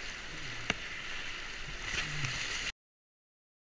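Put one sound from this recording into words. A kayak paddle splashes in the water.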